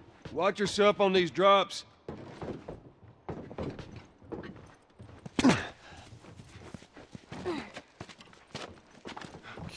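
Footsteps scuff on concrete.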